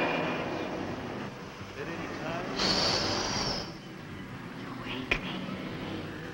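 A spinning wheel whirs steadily.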